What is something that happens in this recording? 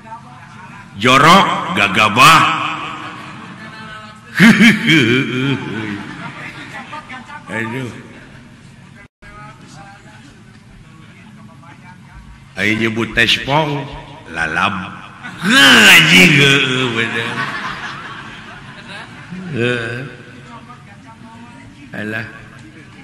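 A man speaks in lively, theatrical character voices through a loudspeaker.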